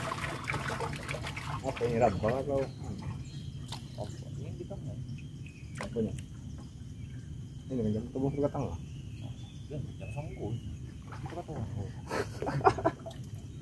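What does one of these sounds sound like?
A paddle splashes in water.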